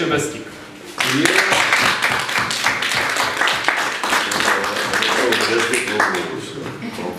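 A crowd of people applauds in a room.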